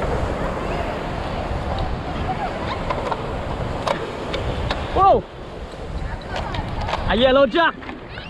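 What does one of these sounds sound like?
Sea waves crash and surge against rocks below.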